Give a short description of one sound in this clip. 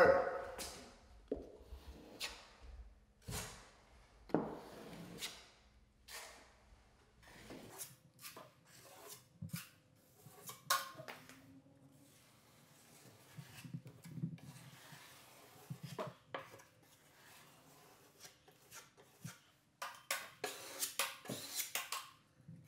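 A putty knife scrapes in short strokes along drywall.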